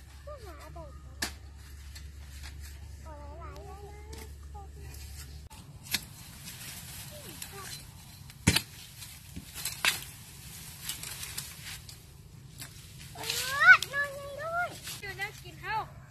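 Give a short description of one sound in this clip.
Children talk and call out nearby outdoors.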